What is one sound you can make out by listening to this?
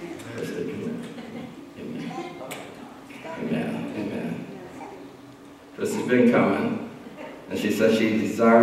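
Women sing into microphones, heard through loudspeakers in a large echoing hall.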